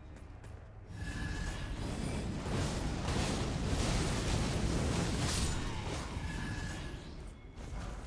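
A huge burst of fire roars and crackles.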